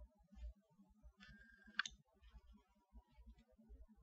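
A card is laid down softly on a cloth.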